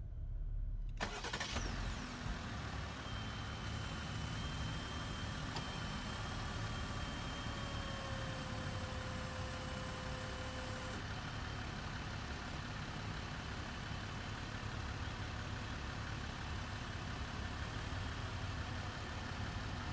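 An engine idles steadily outdoors.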